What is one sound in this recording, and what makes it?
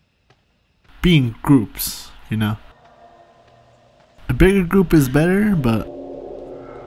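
A man calls out loudly and tensely nearby.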